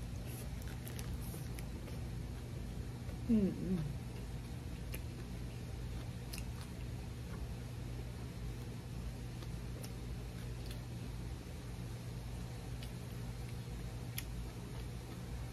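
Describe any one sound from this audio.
A young woman crunches on crispy pancake close by.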